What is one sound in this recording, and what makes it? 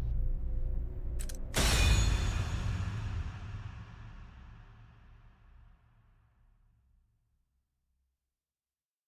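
Game music swells and fades out.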